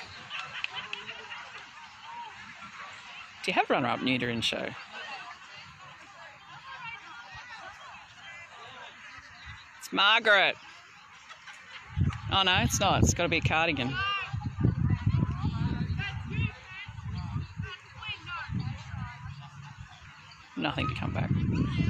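A crowd of men and women chatters at a distance outdoors.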